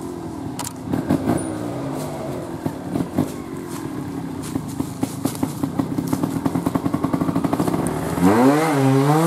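A trial motorcycle engine idles and putters close by.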